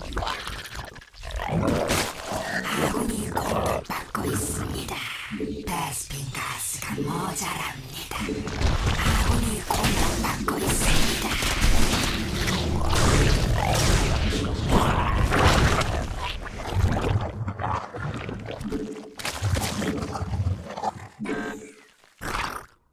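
Gunfire and explosions of a video game battle crackle.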